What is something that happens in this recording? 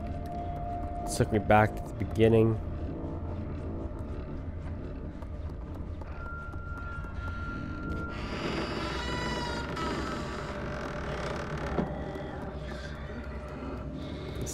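Small footsteps patter on a wooden floor.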